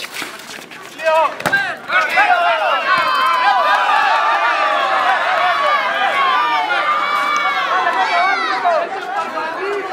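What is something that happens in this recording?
A crowd cheers and shouts loudly after a goal.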